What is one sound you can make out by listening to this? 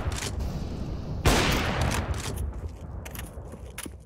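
A sniper rifle fires a shot in a video game.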